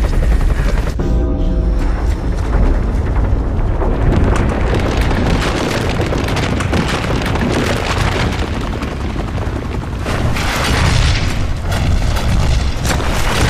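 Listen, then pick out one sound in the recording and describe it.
Debris crashes and rumbles loudly.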